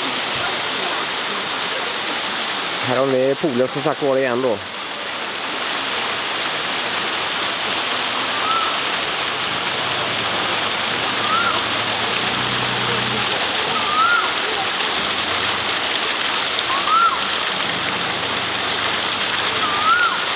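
A breeze rustles through palm leaves outdoors.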